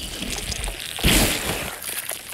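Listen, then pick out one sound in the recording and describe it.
A loud heavy impact thuds.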